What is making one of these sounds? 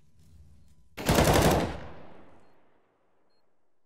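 A rifle fires a short, loud burst that echoes off.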